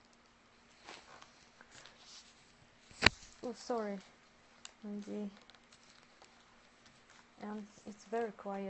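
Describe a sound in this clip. Paper rustles and creases as it is folded.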